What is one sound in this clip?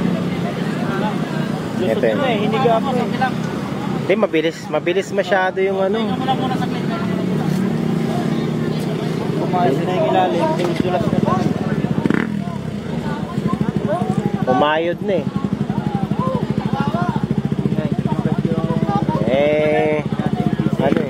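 Several men talk casually nearby outdoors.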